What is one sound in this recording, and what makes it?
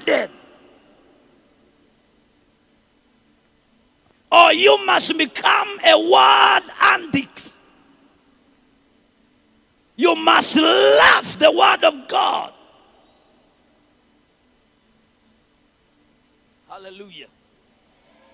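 A young man speaks with animation into a microphone in a large echoing hall.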